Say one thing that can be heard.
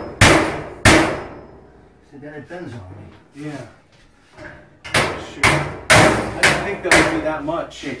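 Loud metal clanks and bangs ring out in a small room.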